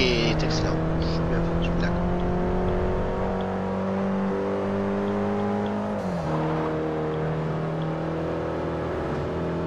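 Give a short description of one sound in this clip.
A car engine roars at high revs, rising steadily in pitch and dropping sharply at a gear change.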